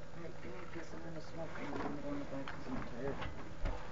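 A pig grunts a few times.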